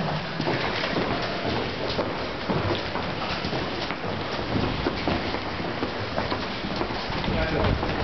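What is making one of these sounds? Footsteps hurry across a hard floor.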